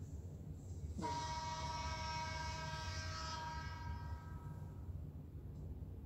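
A bright ringing chime swells and fades.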